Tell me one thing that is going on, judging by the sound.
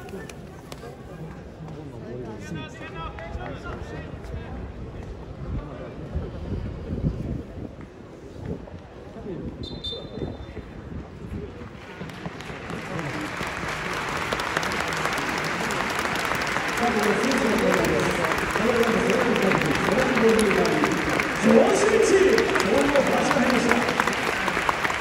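A large crowd murmurs and rumbles in an open stadium.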